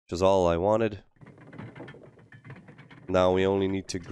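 A heavy metal door slides open with a low rumble.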